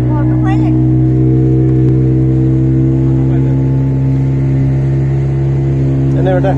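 A boat engine hums loudly and steadily.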